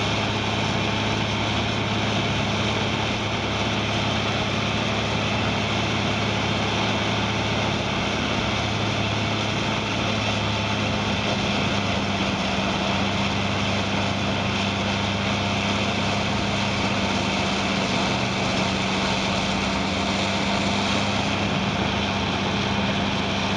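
A heavy machine grinds and rumbles as it crushes material.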